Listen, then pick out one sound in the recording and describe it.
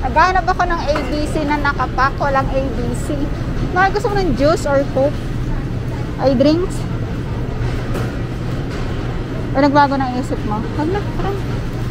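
A shopping cart rattles as it rolls over a tiled floor.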